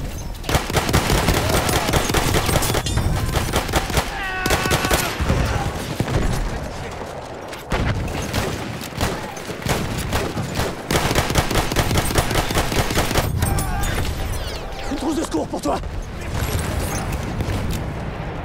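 Explosions boom with heavy rumbling.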